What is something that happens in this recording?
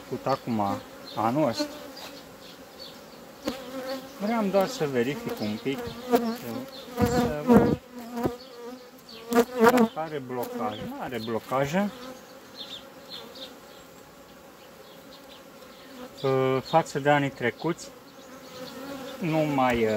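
Bees buzz steadily.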